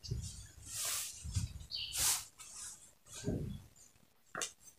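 Cloth rustles and swishes as hands smooth it flat.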